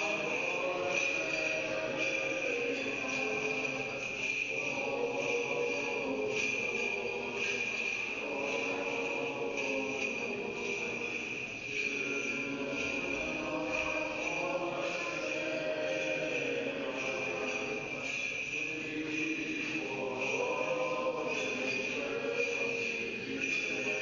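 A group of voices chants slowly in a large, echoing hall.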